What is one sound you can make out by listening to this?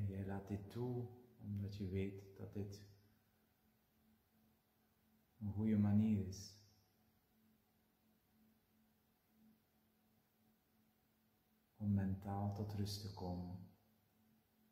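A man speaks slowly and calmly in short phrases, close by, with long pauses between them.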